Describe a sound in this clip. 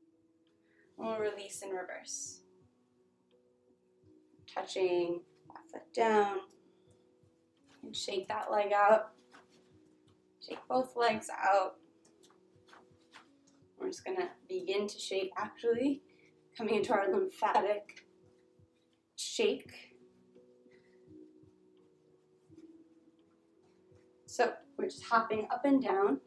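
A young woman speaks calmly, close by, in short phrases with pauses.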